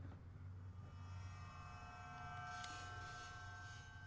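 A soft electronic chime sounds as a game menu opens.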